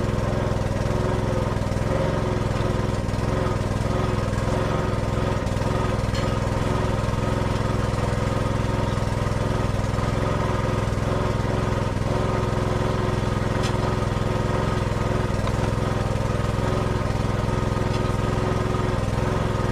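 An engine idles steadily close by.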